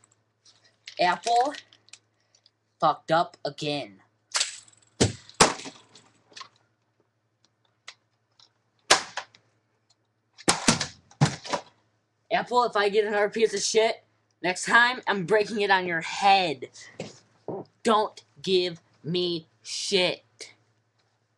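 A young man speaks close to a microphone, with animation and in bursts.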